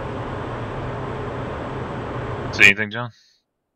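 A jet engine roars steadily and then cuts off abruptly.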